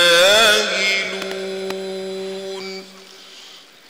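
A man chants a recitation in a long, held, melodic voice through a microphone.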